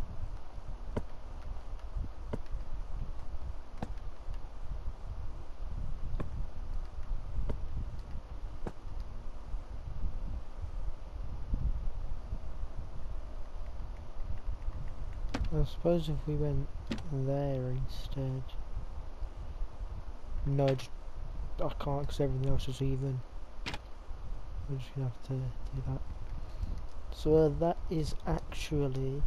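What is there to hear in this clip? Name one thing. Blocks are placed with short soft knocks.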